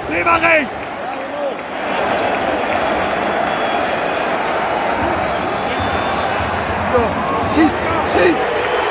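A huge stadium crowd roars and cheers loudly.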